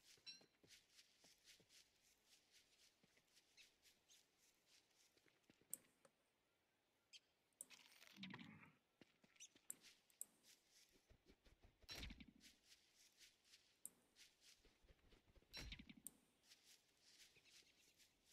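Light footsteps patter quickly on dry ground.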